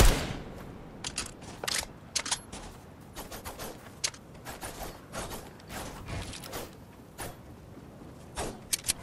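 Footsteps patter quickly across the ground.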